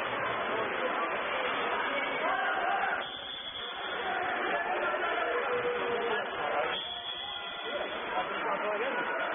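Water splashes as swimmers thrash in a pool, echoing in a large indoor hall.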